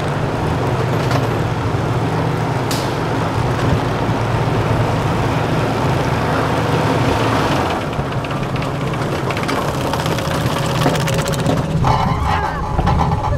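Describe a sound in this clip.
A roller coaster car rumbles and clatters steadily along its track.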